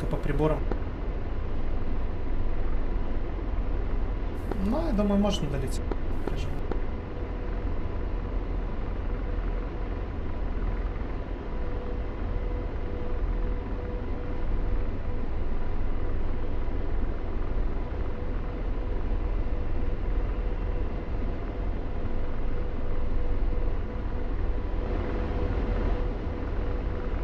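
A jet engine rumbles steadily.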